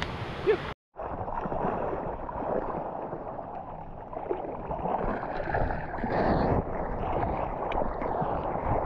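Water splashes and sloshes against a surfboard.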